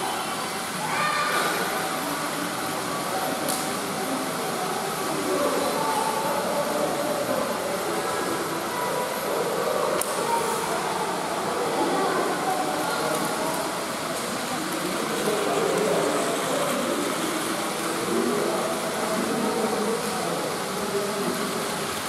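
Children and adults chatter throughout an echoing hall.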